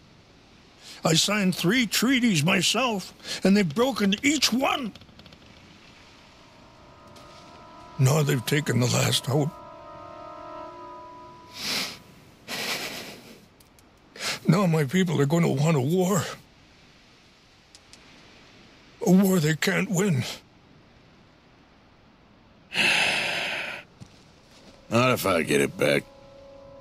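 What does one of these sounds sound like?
A man speaks earnestly in short phrases nearby.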